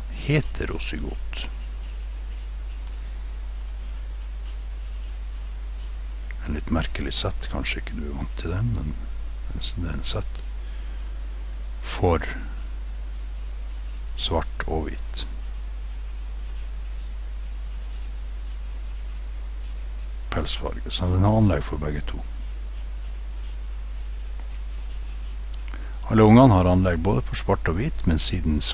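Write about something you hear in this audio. A pen scratches on paper as it writes.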